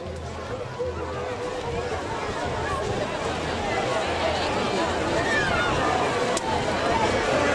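A large outdoor crowd of men, women and children chatters and shouts.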